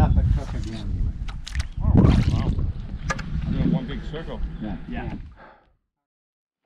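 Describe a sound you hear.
A canoe paddle splashes and dips in the water.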